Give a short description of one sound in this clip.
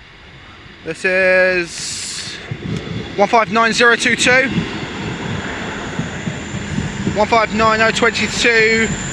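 A train rumbles and clatters past close by.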